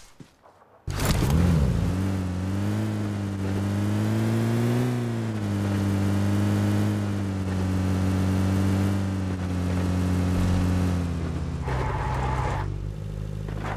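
A vehicle engine hums and revs up and down.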